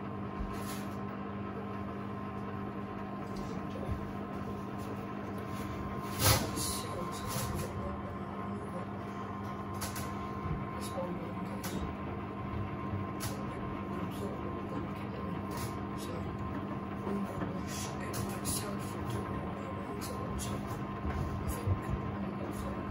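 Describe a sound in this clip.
Water and wet laundry slosh and splash inside a washing machine.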